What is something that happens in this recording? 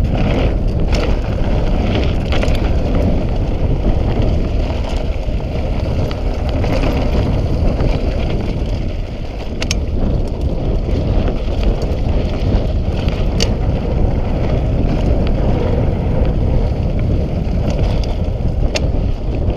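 Bicycle tyres crunch and roll over a dirt trail.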